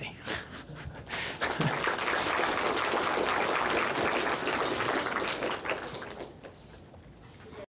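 A man speaks to an audience in a large echoing hall.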